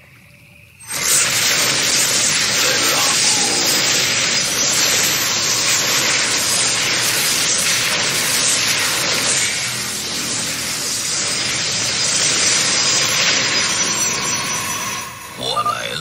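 Energy blasts crackle and hiss loudly.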